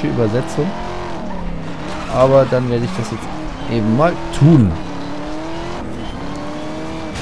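A sports car engine roars, revving up and down through gear changes.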